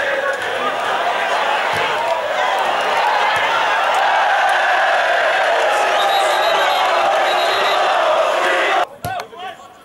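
A large crowd roars and cheers outdoors.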